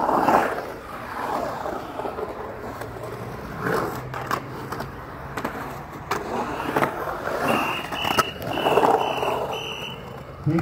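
Skateboard wheels roll and rumble over concrete, swelling and fading.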